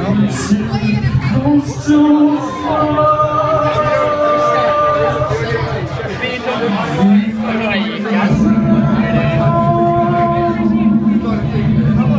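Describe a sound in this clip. An electric guitar plays loudly through an amplifier.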